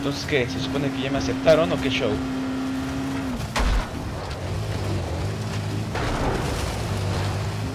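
A buggy engine rumbles steadily as the vehicle drives along.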